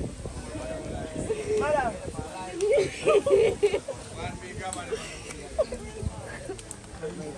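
A crowd of men and women outdoors wail and sing together with emotion.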